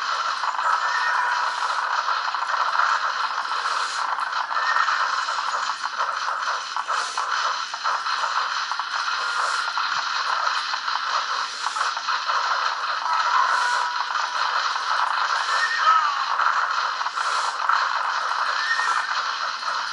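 Game battle sounds clatter steadily from a computer's speakers.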